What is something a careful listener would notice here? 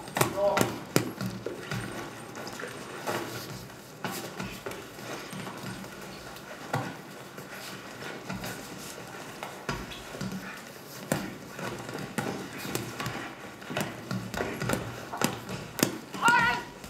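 Gloved punches thud against a body.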